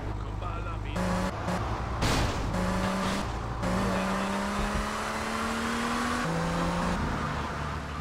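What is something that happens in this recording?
A car engine revs up and rises in pitch as the car speeds away.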